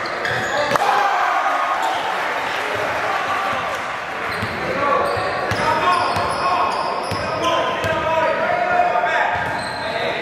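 A basketball bounces with hollow thuds as players dribble.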